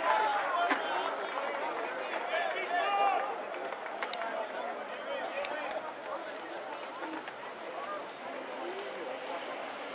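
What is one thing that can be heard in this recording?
Young men call out to each other on the field.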